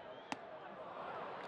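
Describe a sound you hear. A wooden bat cracks against a baseball.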